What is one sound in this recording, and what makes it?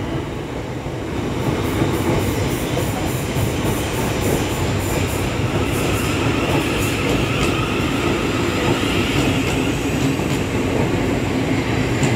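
An electric passenger train rolls past a platform.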